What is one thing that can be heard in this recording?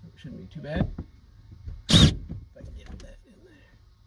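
A plastic mount clicks and knocks.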